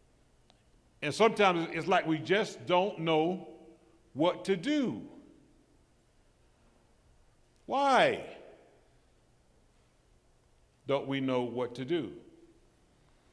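A man preaches with animation through a microphone in a large echoing hall, pausing between phrases.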